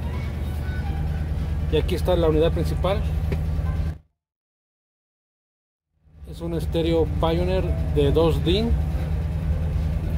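Music plays through car speakers.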